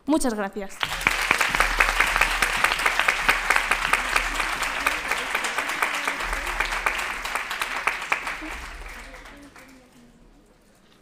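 An audience applauds in a large hall, then the applause slowly fades away.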